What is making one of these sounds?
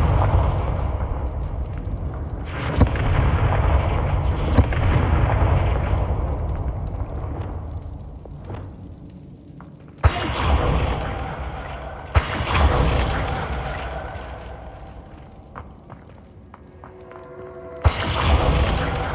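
Magic spells burst with sharp cracks and roaring whooshes.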